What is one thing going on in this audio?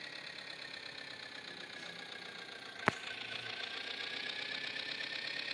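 A tractor engine idles.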